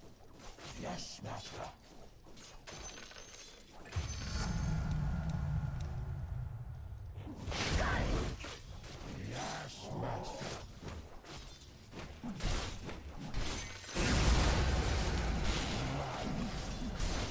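Weapons clash and strike in a fast fight.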